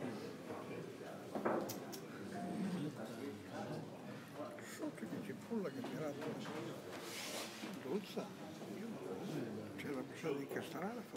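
Men talk quietly among themselves nearby.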